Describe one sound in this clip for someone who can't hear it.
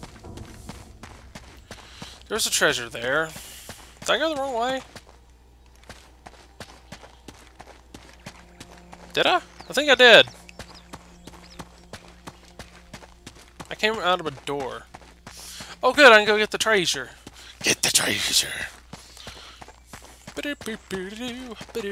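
Footsteps run quickly over grass and stone.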